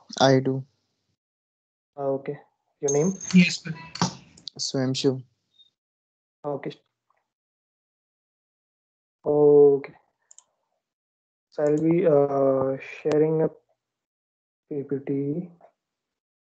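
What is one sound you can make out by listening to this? A man speaks in short bursts with pauses over an online call.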